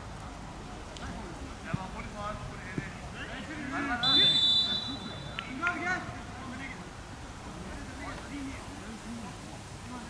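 A football thuds as it is kicked and headed.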